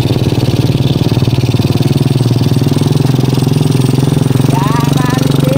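A motorcycle engine putters steadily close by.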